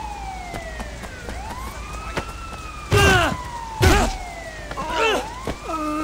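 Footsteps run on stone paving.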